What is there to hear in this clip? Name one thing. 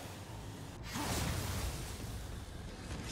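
Crystals shatter with a loud crash.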